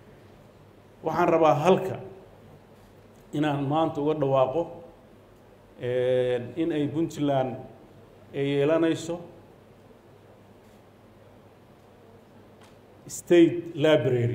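A middle-aged man speaks slowly and formally into a microphone over loudspeakers, pausing between phrases.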